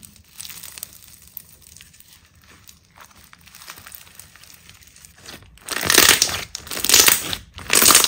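Crunchy slime crackles as hands knead it.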